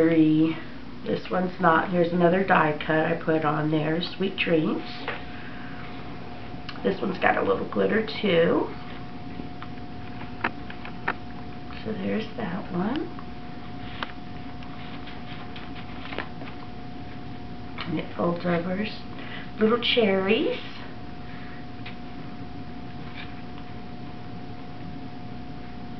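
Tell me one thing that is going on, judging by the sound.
Stiff paper pages rustle and tap softly as they are flipped open and closed.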